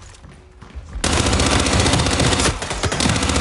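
A submachine gun fires rapid, continuous bursts.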